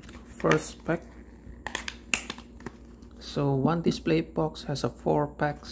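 A cardboard box flap is pried open with a soft scrape.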